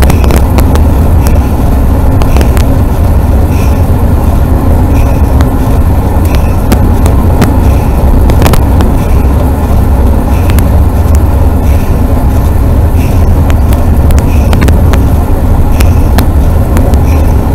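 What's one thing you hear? Wind rumbles loudly against a small enclosed vehicle as it rolls along a road.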